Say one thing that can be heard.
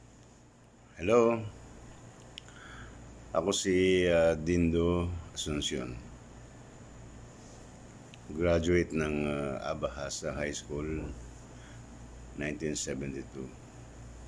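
An elderly man speaks calmly and close up, in short bursts with pauses.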